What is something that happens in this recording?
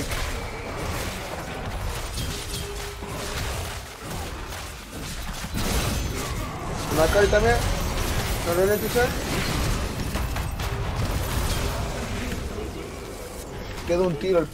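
Spell blasts and hits crackle and boom in a game battle.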